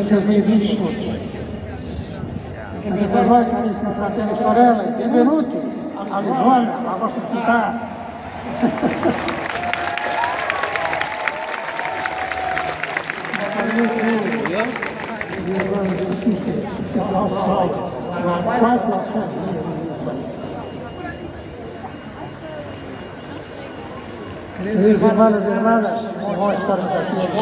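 An elderly man speaks calmly through loudspeakers outdoors, echoing across an open space.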